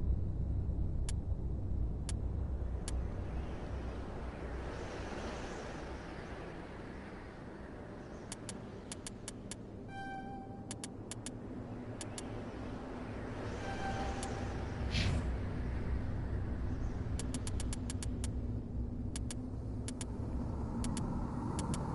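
Short sharp menu clicks tick now and then as a game menu is browsed.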